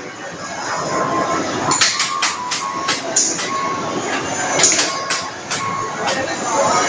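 Electronic arcade beeps ring out in short bursts.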